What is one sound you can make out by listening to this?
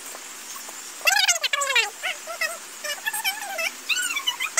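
A young girl talks in a high, lively voice close by.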